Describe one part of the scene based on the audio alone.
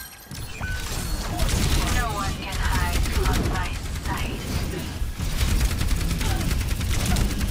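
Deep explosions and rumbling thud loudly.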